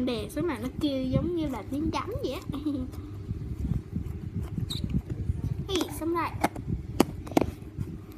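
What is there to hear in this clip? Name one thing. A plastic tub crinkles and clicks as hands handle it.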